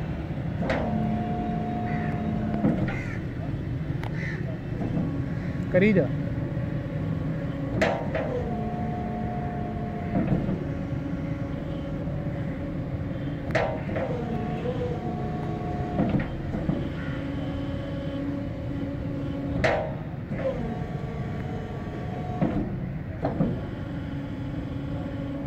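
A motor hums steadily as a road barrier rises and sinks again and again.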